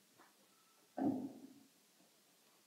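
A microphone thumps as it is handled.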